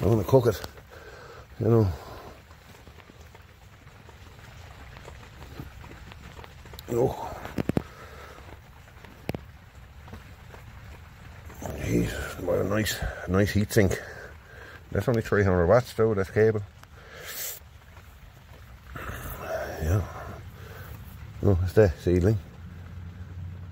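Hands press and scrape loose soil with a soft rustle.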